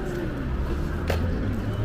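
Skateboard wheels roll on asphalt.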